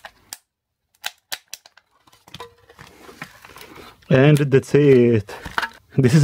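A plastic case clicks and creaks as it is pried open.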